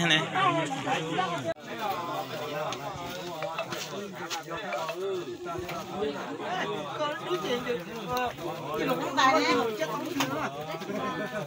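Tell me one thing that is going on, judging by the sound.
A crowd of women and men talk and chatter nearby outdoors.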